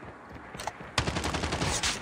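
A gun is reloaded with metallic clicks.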